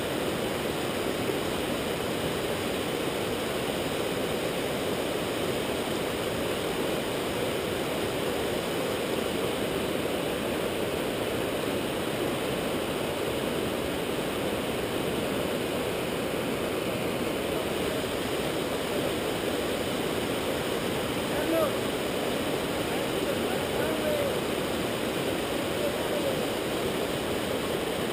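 A river rushes loudly over rocks nearby.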